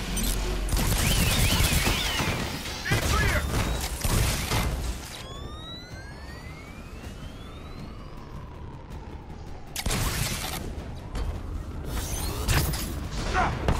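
Jet thrusters roar.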